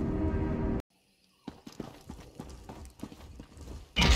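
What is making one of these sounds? Footsteps scuff on stone.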